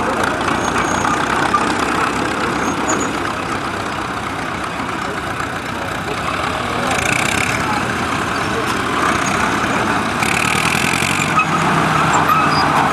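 An old tracked tractor engine rumbles and chugs steadily nearby.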